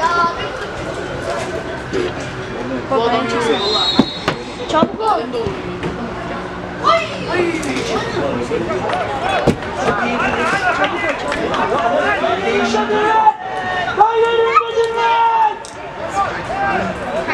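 Football players shout to each other across an open outdoor field.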